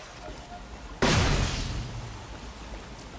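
A loud electric whoosh bursts and quickly fades.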